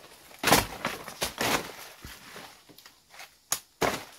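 A knife chops at plant stalks.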